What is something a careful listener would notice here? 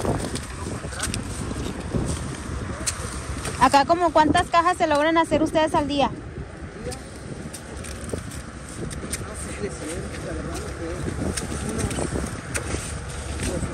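Leaves rustle as celery is pulled from the ground.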